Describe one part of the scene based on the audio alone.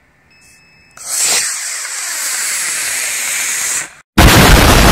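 A rocket engine roars loudly as it launches.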